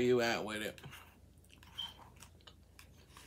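A woman chews food with soft mouth sounds.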